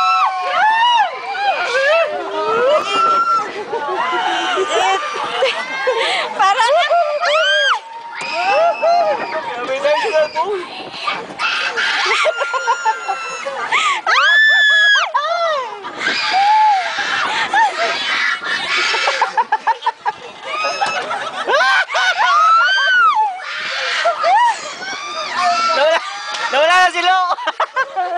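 Young people scream and shriek with excitement close by.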